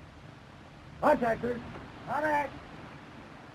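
Men shout commands to each other outdoors.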